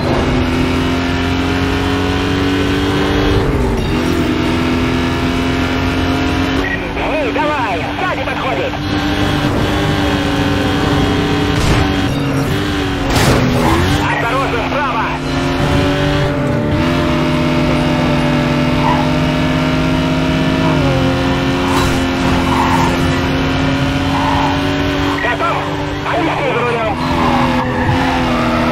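A racing car engine roars at high revs, dropping in pitch at each gear change.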